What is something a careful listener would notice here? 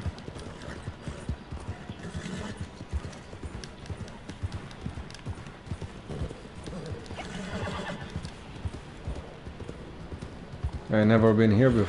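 A horse's hooves pound rapidly on a dirt track.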